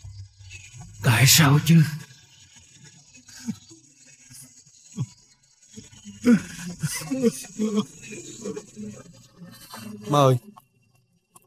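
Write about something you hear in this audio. An elderly man sobs and groans up close.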